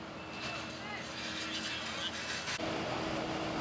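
Debris clatters and scrapes as it is handled.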